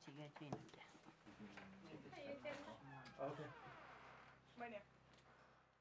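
Women talk quietly in a room.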